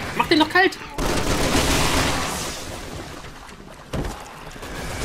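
A pistol fires with a loud bang.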